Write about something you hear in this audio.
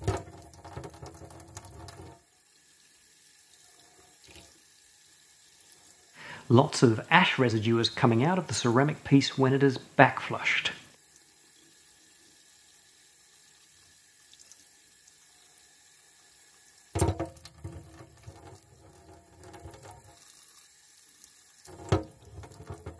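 A metal block knocks against the bottom of a sink.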